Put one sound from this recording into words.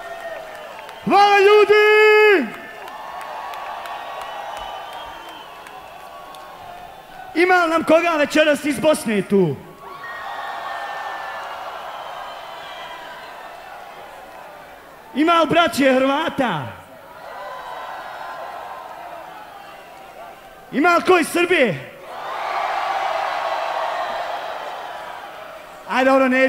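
A man shouts and chants loudly through a microphone in short bursts.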